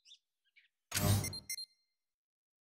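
A short interface sound plays as a menu opens.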